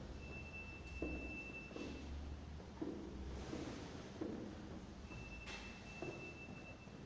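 Footsteps thud down hard stairs in an echoing space.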